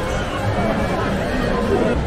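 Arcade machines play electronic tunes and beeps.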